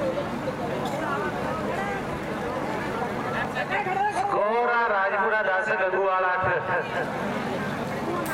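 A young man chants rapidly and repeatedly.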